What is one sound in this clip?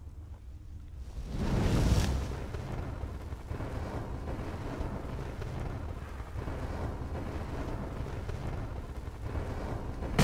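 A magic flame crackles and roars close by.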